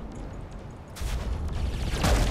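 An energy blast bursts with a whoosh.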